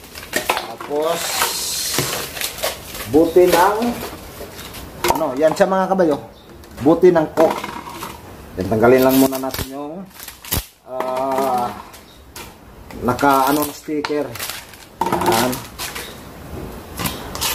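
A knife cuts through a plastic bottle with crackling and crinkling.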